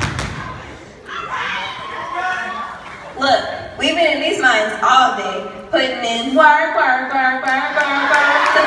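Young women chant loudly together in a large hall.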